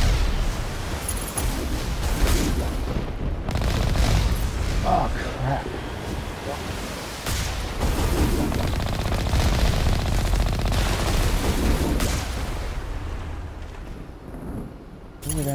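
A vehicle's engine rumbles as it drives through water.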